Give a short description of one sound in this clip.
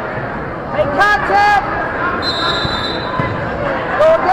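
Spectators shout loudly with excitement.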